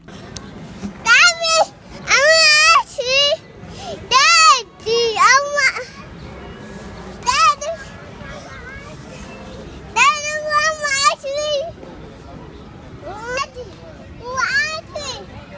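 A small boy squeals and talks excitedly close by.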